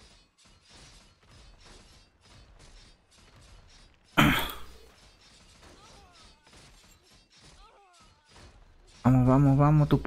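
Weapons clash in rapid, repeated hits.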